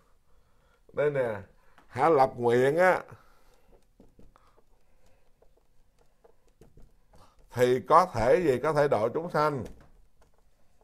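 A man speaks calmly nearby, in short phrases with pauses.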